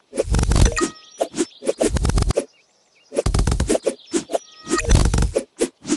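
Bright chiming coin sounds ring out.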